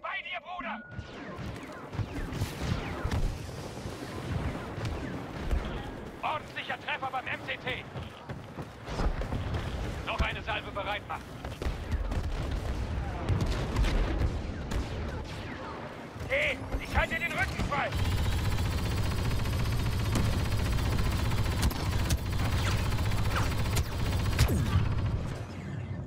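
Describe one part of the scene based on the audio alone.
Laser guns fire in sharp bursts.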